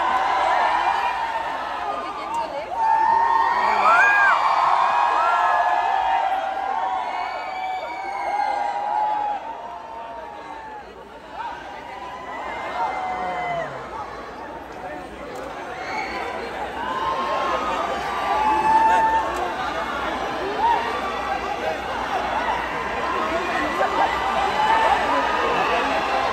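A large crowd sings along loudly, outdoors.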